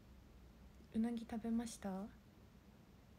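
A young woman speaks briefly and softly, close to the microphone.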